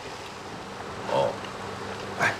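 A young man murmurs briefly, close by.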